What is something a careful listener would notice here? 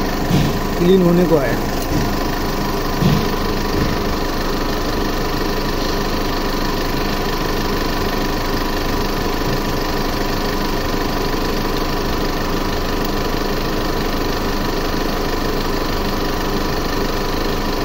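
An engine idles with a steady hum.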